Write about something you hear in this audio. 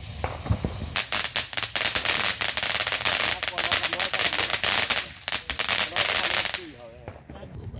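A firework fountain hisses and roars loudly.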